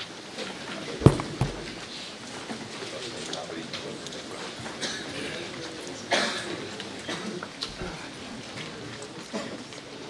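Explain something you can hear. An elderly man speaks calmly into a microphone over a loudspeaker.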